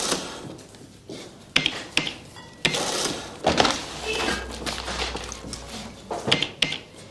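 A cash register clicks and beeps as items are rung up.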